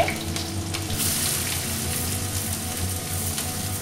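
Chopped onions drop into hot oil and sizzle more loudly.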